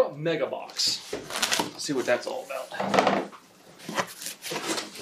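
Cardboard flaps rustle and thump as a box is opened.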